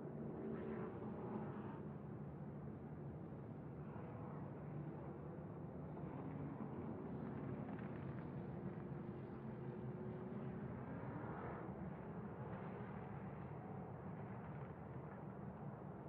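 A race truck engine roars loudly up close, its pitch rising and falling through gear changes.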